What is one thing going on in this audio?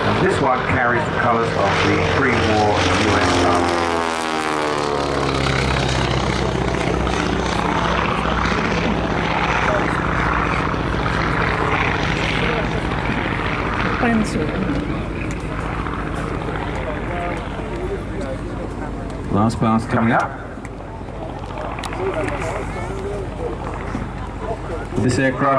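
A propeller plane's engine drones loudly overhead, dropping in pitch as it passes close by.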